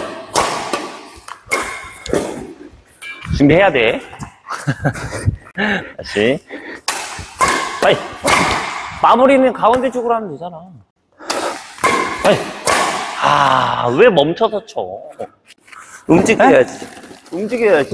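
Rackets hit a shuttlecock with sharp pops.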